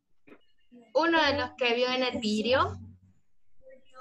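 A young girl speaks in a drawn-out, sing-song voice through an online call.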